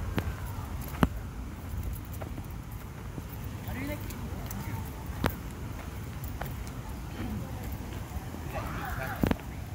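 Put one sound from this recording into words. Footsteps thud on dry dirt as a woman runs.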